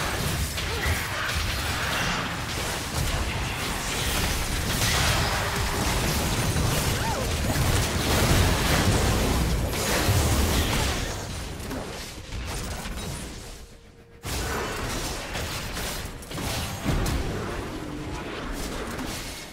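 Magic blasts and clashing weapons crackle in a fast, busy fight.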